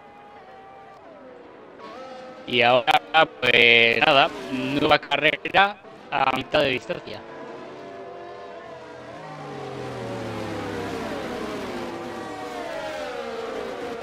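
Racing car engines whine at high revs, rising and falling in pitch as cars speed past.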